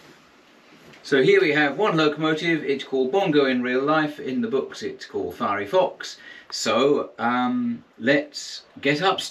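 An elderly man talks calmly and clearly, close by.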